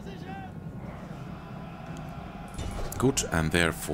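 Weapons clash in a battle.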